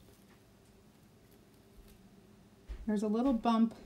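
A plastic stencil sheet peels off paper with a soft crackle.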